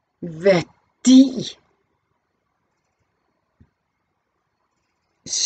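A middle-aged woman speaks calmly and close by, in short phrases with pauses.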